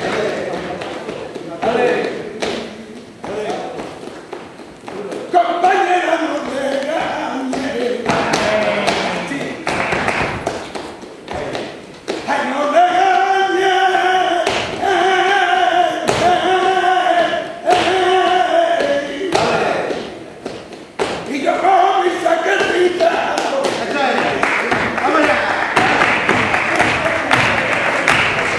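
Several men clap their hands in a steady rhythm in a reverberant hall.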